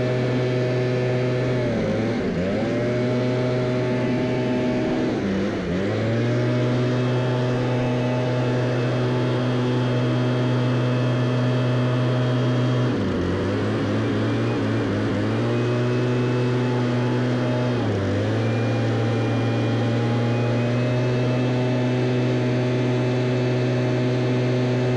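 A backpack engine drones loudly, its pitch dipping briefly now and then as the throttle eases.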